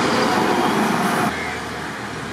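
A heavy truck rumbles past on a road.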